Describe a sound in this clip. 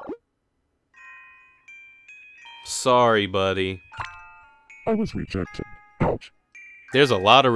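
Short electronic beeps and chimes play.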